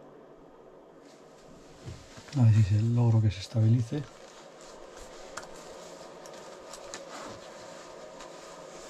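A small cooling fan whirs steadily.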